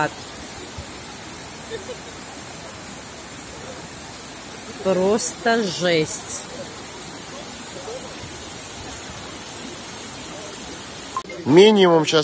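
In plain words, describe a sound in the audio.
Muddy water rushes across a road.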